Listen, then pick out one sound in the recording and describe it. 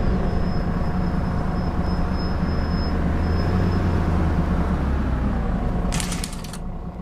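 A bus engine slows down and settles as the bus comes to a stop.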